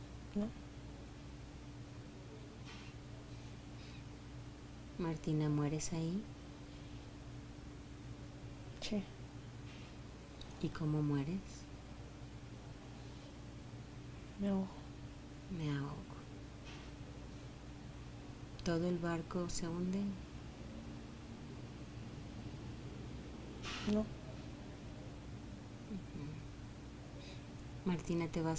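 A woman snores loudly in deep, rasping breaths.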